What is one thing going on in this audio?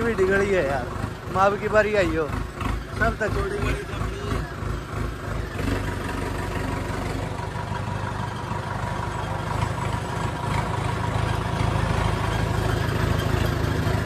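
A tractor engine chugs and rumbles close by, then settles into a steady drone.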